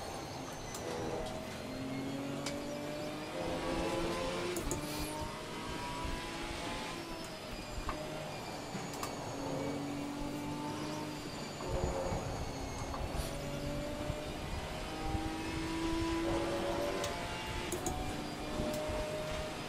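Rain patters steadily on a car's windscreen.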